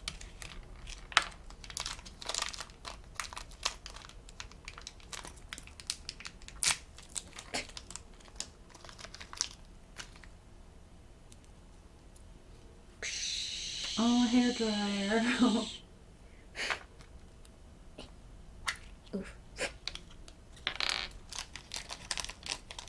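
Small plastic pieces click and rattle as they are handled.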